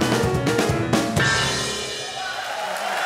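A piano plays loud final chords in a large hall.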